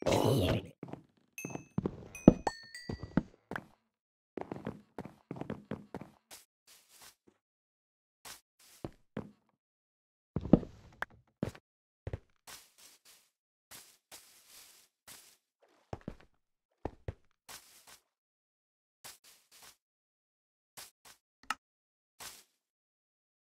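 Footsteps thud steadily over grass, wood and dirt.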